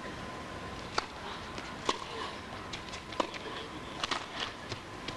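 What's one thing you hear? A tennis ball is struck hard with a racket several times.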